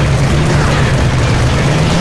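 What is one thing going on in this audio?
A mounted machine gun fires in bursts.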